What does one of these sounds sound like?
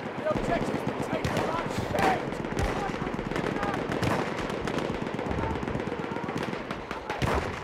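A heavy machine gun fires in rapid, rattling bursts.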